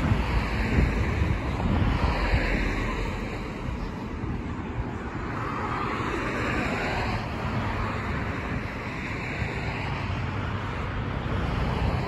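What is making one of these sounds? Cars drive past on a nearby road with a steady whoosh.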